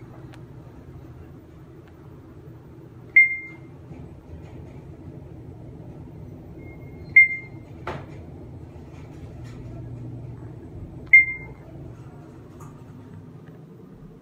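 An elevator hums steadily as it rises.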